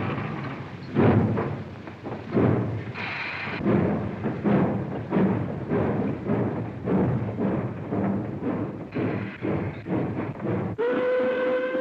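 A steam locomotive chugs in heavy rhythmic puffs.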